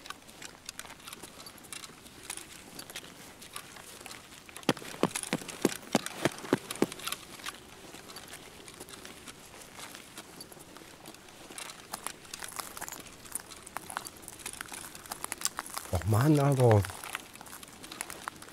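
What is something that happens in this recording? Footsteps tread quickly along hard pavement.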